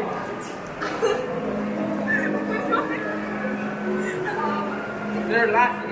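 A young woman speaks and laughs close by.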